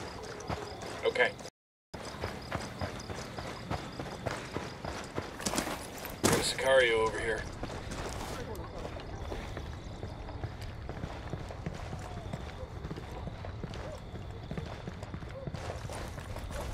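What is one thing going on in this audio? Footsteps crunch on dirt and then tap on a hard floor.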